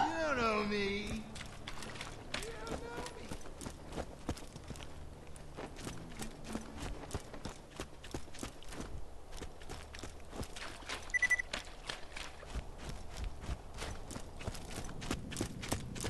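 Footsteps tap steadily on hard ground.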